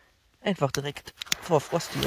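A gas lighter hisses briefly.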